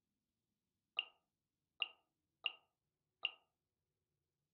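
A game menu gives short bright clicks as the selection steps along.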